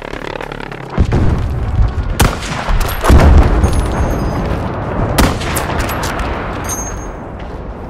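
Heavy explosions boom and rumble nearby.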